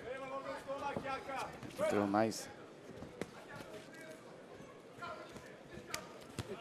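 A fighter's kicks and punches land with sharp thuds.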